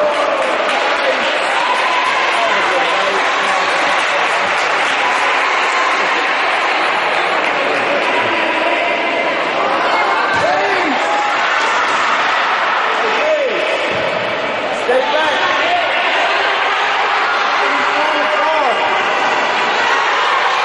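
Young girls shout and call out to each other across an echoing hall.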